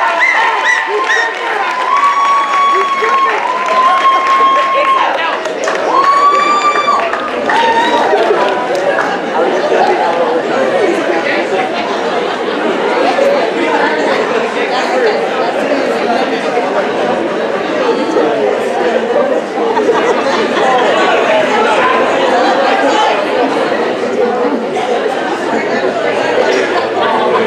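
A large audience chatters and cheers in an echoing hall.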